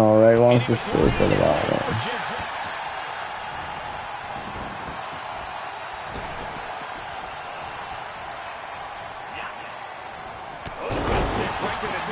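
A heavy body slams hard onto a wrestling mat, twice.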